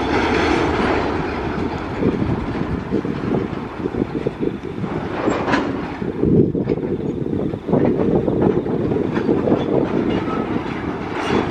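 A freight train rumbles slowly along the tracks with wheels clacking and squealing.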